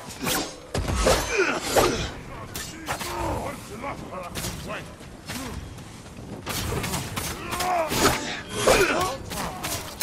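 Enemy fighters grunt and cry out in pain.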